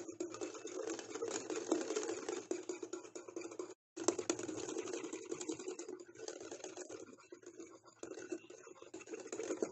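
A whisk beats a thick mixture in a glass bowl with rapid scraping and clinking.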